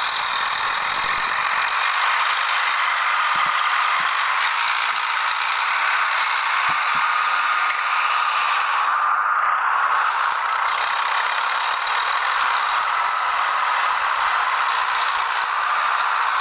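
A tractor engine runs and strains steadily close by.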